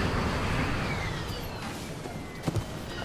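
A jet airliner's engines roar and whine as it comes in to land.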